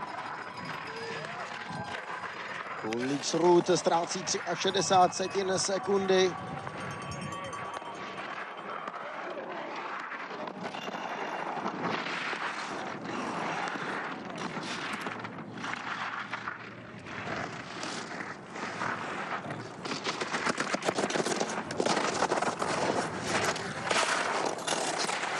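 Skis scrape and hiss loudly across hard snow.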